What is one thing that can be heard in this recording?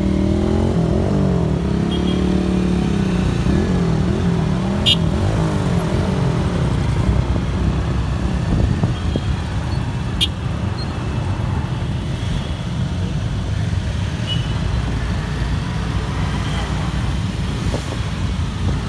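A convoy of many small motorcycles rumbles along a road.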